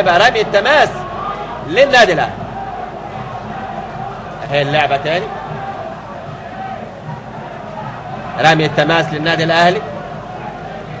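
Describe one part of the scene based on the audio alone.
A stadium crowd murmurs and chants steadily.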